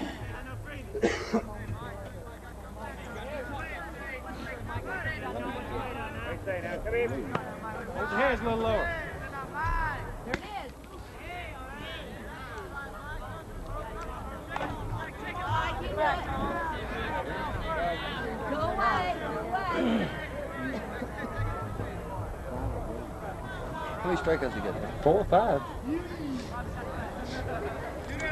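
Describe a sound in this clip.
Men talk and call out across an outdoor ball field.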